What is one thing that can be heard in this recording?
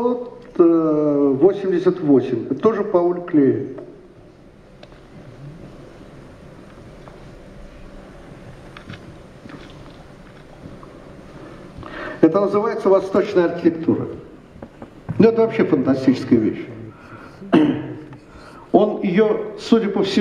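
An elderly man speaks expressively into a microphone, heard through a loudspeaker in a hall.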